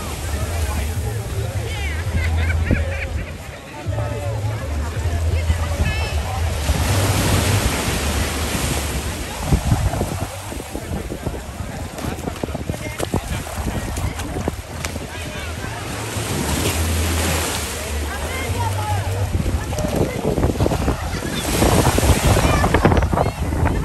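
Wind blows against a microphone outdoors.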